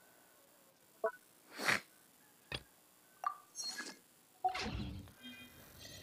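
Short game menu chimes and clicks sound.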